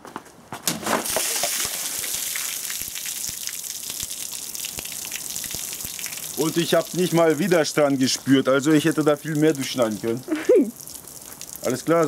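Water splashes and pours onto the ground.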